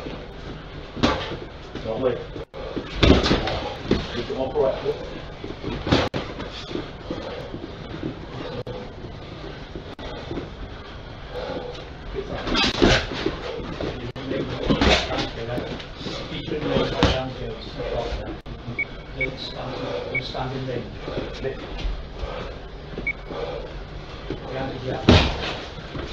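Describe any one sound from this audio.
Boxing gloves thud sharply against gloves and bodies.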